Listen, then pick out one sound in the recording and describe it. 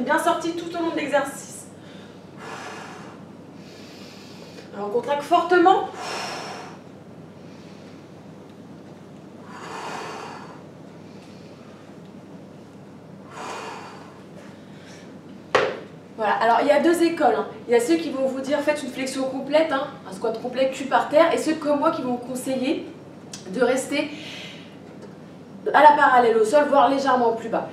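A young woman speaks up close, clearly and with energy.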